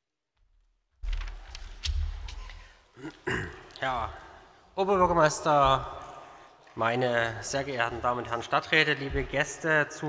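A middle-aged man speaks into a microphone at a lectern.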